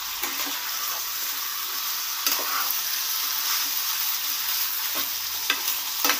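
A metal spatula scrapes and knocks against a pan.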